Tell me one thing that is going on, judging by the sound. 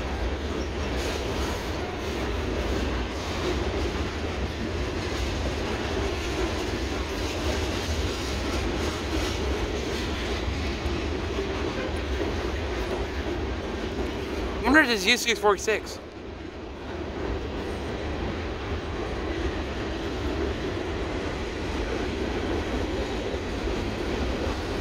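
A freight train rumbles steadily across a bridge overhead.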